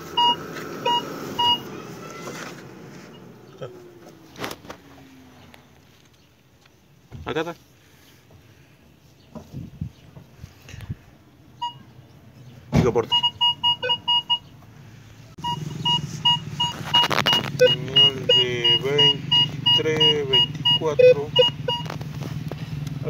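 A metal detector beeps in short, repeated electronic tones.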